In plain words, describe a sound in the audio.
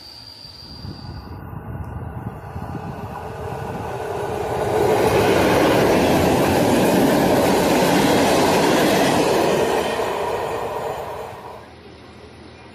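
An electric locomotive hauling passenger coaches approaches and passes at speed, its wheels roaring on the rails.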